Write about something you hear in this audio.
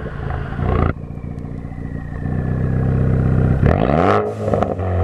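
A car engine idles with a deep, throbbing rumble.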